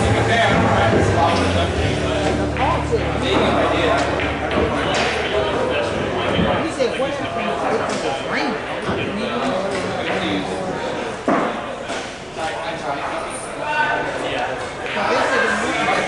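Several men talk in the background of a room.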